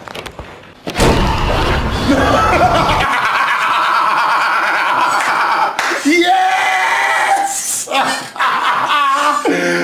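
A man screams and laughs loudly.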